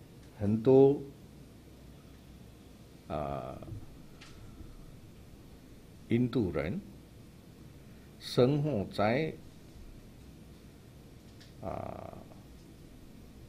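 An elderly man speaks slowly in short, chanted phrases into a microphone, with pauses between them.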